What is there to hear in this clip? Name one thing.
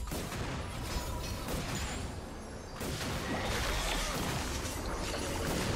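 Small fighters clash in a video game battle, with sword hits and spell blasts.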